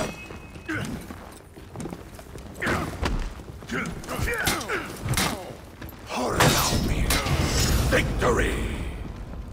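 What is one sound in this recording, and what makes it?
Metal weapons clash and strike in quick bursts.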